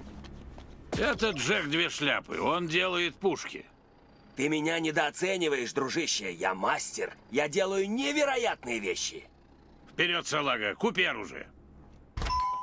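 A man talks with animation, heard close and clear.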